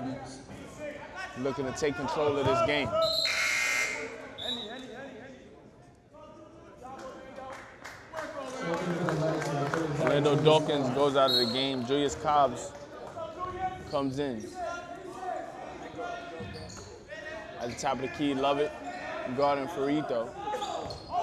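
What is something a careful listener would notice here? A crowd of spectators talks and calls out in an echoing gym.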